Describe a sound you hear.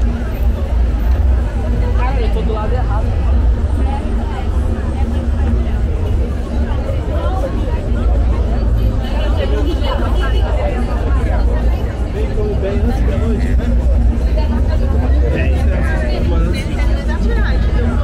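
A crowd of adults chatters all around, outdoors.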